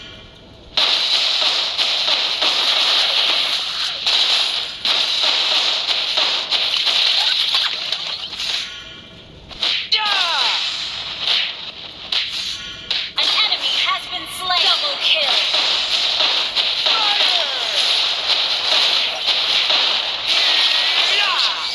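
Swords clash and strike in quick hits.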